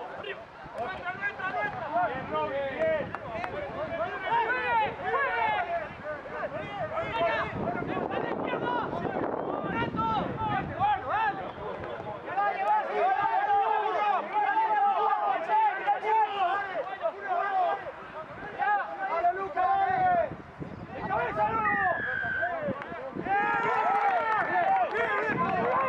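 Young men shout and call to each other outdoors at a distance.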